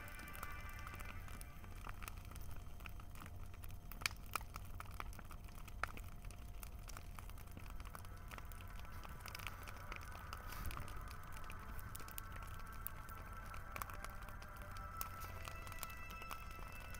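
A large bonfire roars steadily.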